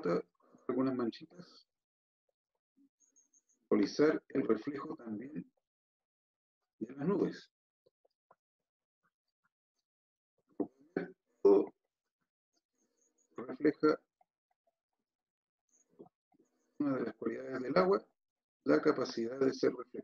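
A man talks calmly in short bursts through a microphone.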